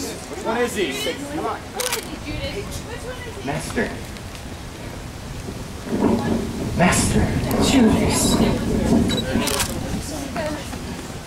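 Men speak loudly nearby.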